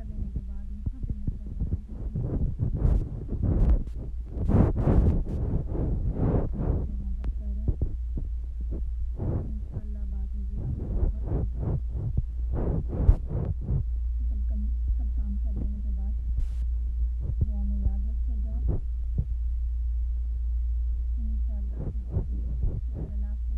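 Pencils scratch on paper.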